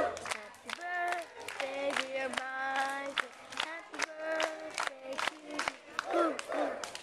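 People clap their hands in time.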